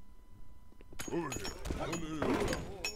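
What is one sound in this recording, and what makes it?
Pickaxes chip at rock with quick, sharp clinks.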